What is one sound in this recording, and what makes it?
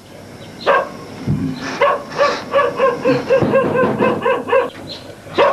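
An animal cries out again and again in short, high calls close by.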